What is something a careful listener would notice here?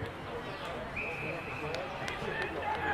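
An umpire blows a single long whistle.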